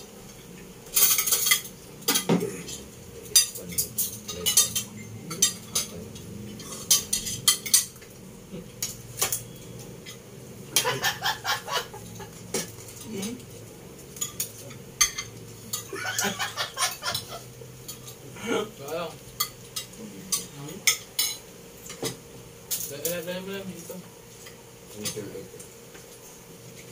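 Cutlery and spoons clink against plates.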